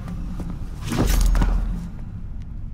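A heavy body thuds to the floor.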